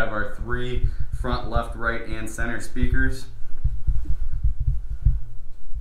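Footsteps thud softly on carpet.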